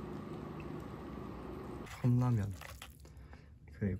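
Hot water pours into a cup.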